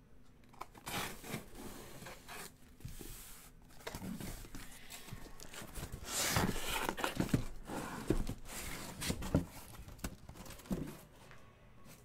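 Cardboard boxes scrape and rustle as they are handled close by.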